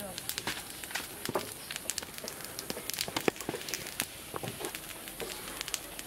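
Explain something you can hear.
A wood fire crackles under a griddle.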